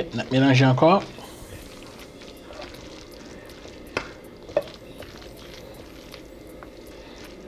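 A spoon scrapes and stirs a mixture in a glass bowl.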